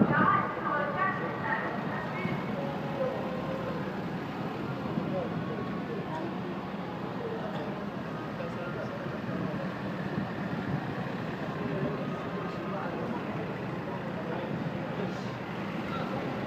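Car engines hum as cars drive past close by.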